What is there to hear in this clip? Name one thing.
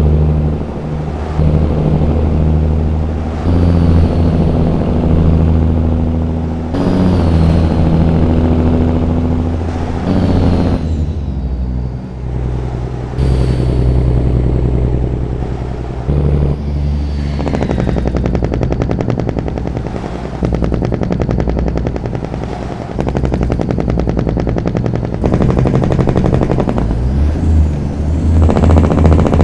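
A heavy truck's diesel engine rumbles and drones steadily, rising and falling as it changes gear.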